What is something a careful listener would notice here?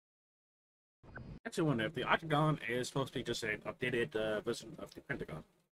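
A young man talks with animation into a microphone close by.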